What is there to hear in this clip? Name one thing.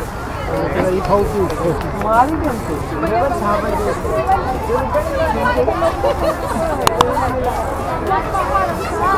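A crowd of men and women chatter and talk outdoors, close by and all around.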